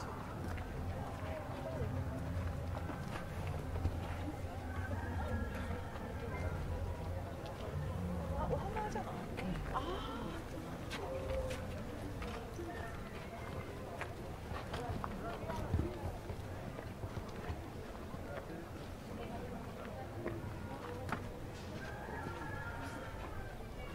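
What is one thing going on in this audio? Footsteps scuff on concrete and gravel.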